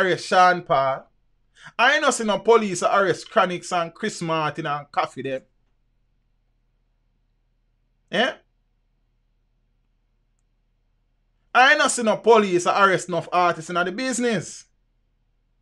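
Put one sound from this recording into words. A man talks with animation into a close microphone, in bursts with long pauses.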